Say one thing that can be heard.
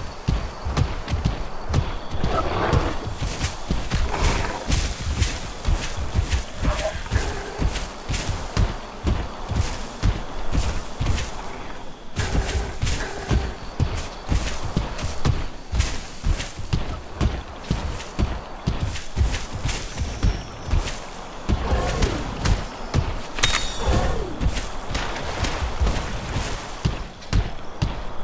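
A large creature's feet thud quickly and steadily on the ground as it runs.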